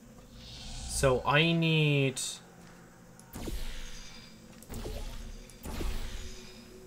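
A portal gun fires with a sharp electronic zap.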